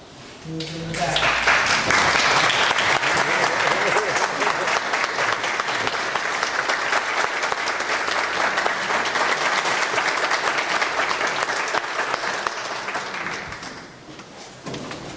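An audience claps and cheers loudly.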